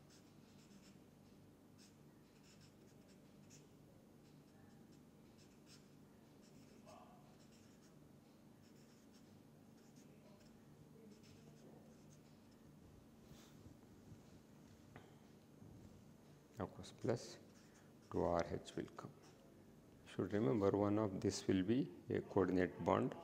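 A marker pen squeaks and scratches on paper.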